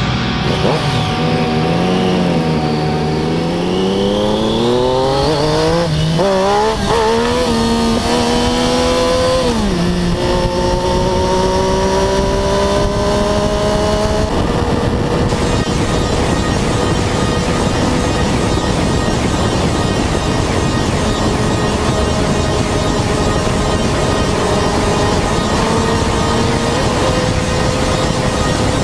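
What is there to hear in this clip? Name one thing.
A motorcycle engine roars close by, its pitch rising and falling as it revs and shifts gears.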